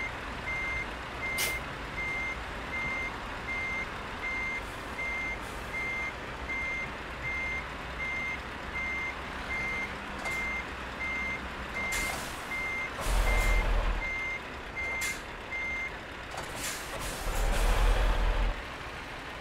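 A truck's diesel engine rumbles low as the truck slowly backs up.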